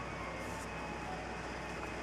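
A broad brush sweeps softly across paper.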